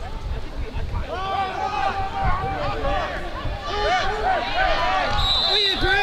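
Football players collide with padded thuds.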